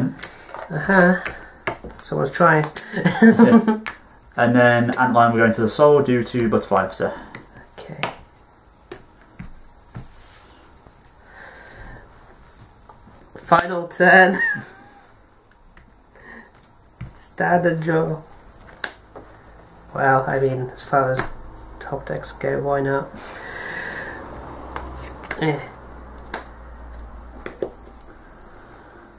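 Playing cards slide and tap softly on a table.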